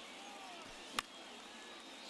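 A bat cracks against a ball.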